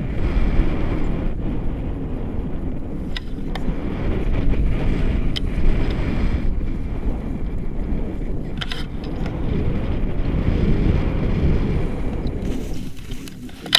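Wind rushes past a microphone during a tandem paraglider flight.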